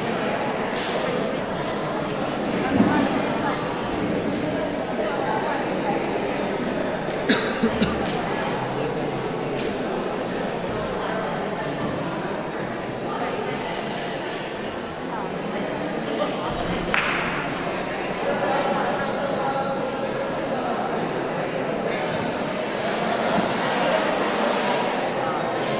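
A wooden pole creaks and thumps as a gymnast grips and swings on it.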